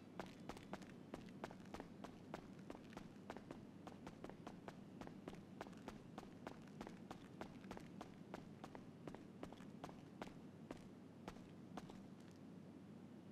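Quick footsteps run across a hard floor, each step echoing.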